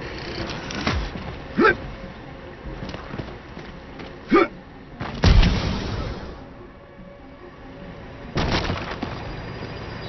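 Game sound effects whoosh and thud in short bursts.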